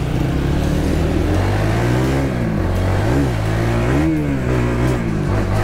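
A motorbike engine hums steadily, rising and falling in pitch as it rides.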